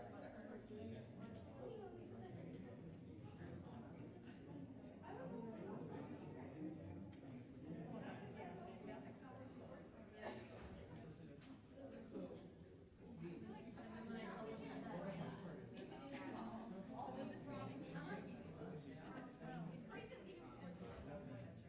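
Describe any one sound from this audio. A seated crowd murmurs and chats quietly.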